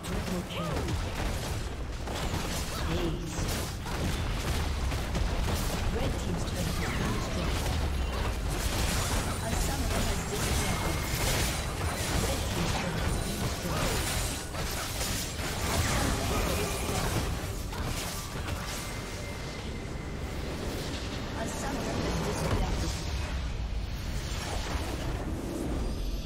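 Game spell effects crackle and clash in a dense battle.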